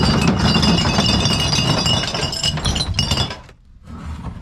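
Plastic bottles and cans rattle and clatter as a hand rummages through them.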